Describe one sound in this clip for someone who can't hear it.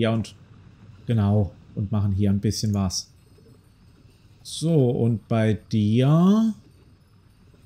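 A man speaks calmly and with animation into a close microphone.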